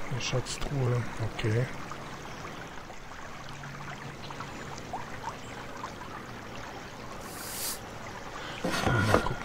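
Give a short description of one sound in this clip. Water splashes in a fountain.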